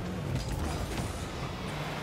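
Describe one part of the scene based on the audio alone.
A ball is struck with a loud thump.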